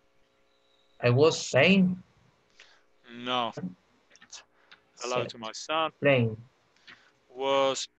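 A middle-aged man speaks clearly and slowly over an online call.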